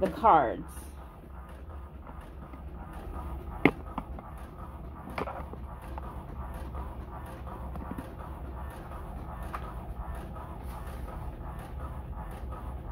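A printer hums and whirs as it prints.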